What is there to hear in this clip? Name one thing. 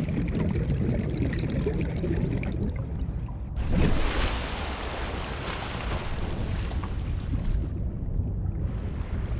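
Muffled underwater rumbling and bubbling goes on.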